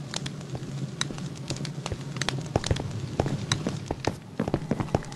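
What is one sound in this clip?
Footsteps thud quickly on a stone floor.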